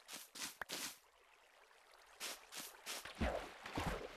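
Water trickles and splashes nearby.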